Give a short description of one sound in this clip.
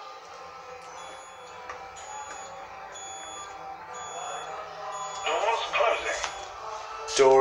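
Lift buttons beep softly as they are pressed.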